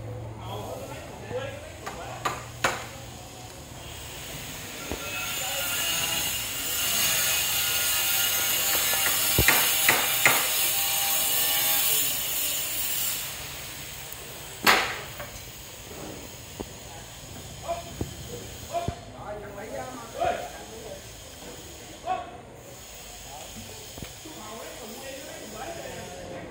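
Wooden beams knock and clatter against scaffolding.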